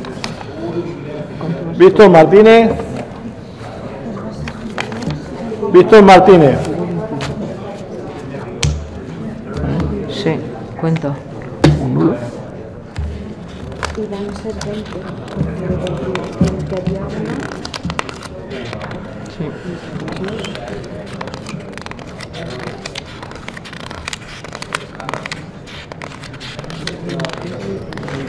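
Paper rustles as ballots are handled.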